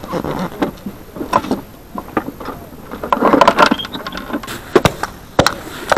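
A man chops ice with a hatchet, knocking sharply.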